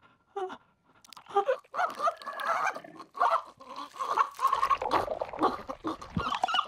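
A young woman gasps and moans in distress close by.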